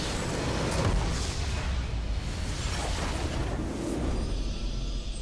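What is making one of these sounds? A loud explosion booms and crackles.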